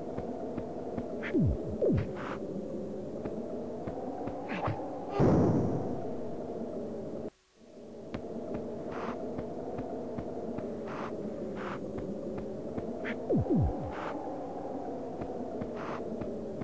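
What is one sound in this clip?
Upbeat electronic game music plays steadily, with a brief silence in the middle.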